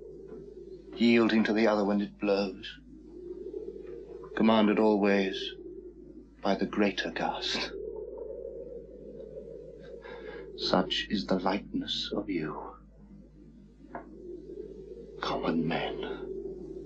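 A man speaks quietly and tensely close by, in short bursts.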